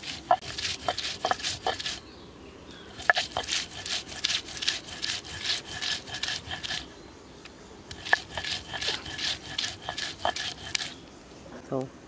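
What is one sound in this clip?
A stone roller grinds back and forth over a grinding stone in quick strokes.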